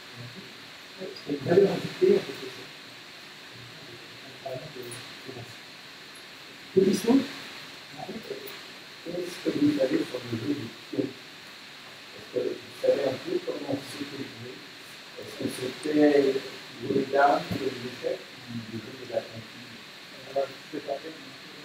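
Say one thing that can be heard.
A man speaks into a microphone in a small room, heard with a slight echo.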